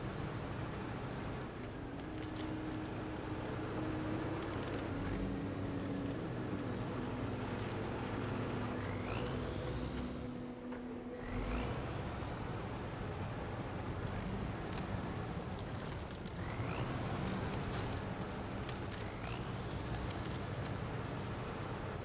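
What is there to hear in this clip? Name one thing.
A heavy truck engine rumbles and strains steadily.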